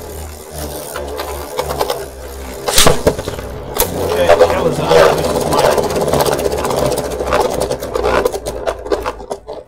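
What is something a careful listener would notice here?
Spinning tops whir and scrape around a plastic arena.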